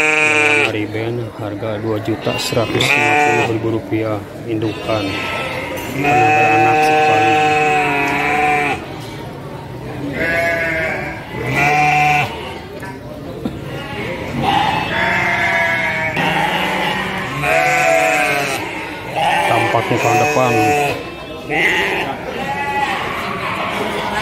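Sheep bleat loudly nearby, over and over.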